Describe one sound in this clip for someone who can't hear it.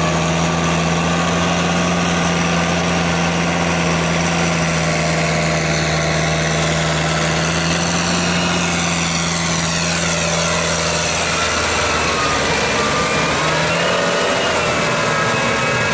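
Tractor tyres churn and splash through wet mud.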